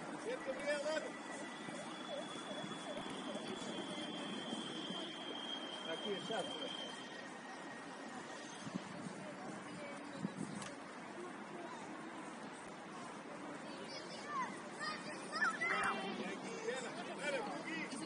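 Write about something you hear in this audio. Young players shout to each other at a distance outdoors.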